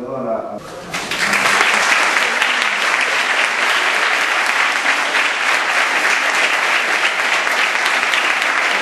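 A large audience applauds.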